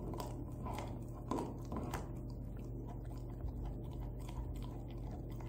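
A dog gnaws and crunches on a bone close by.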